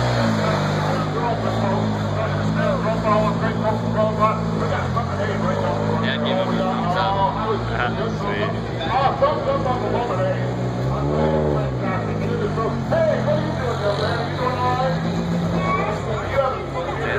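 A rally car engine idles loudly and revs up and down.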